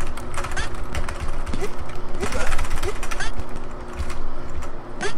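Punches and kicks thud repeatedly as fighters are knocked down.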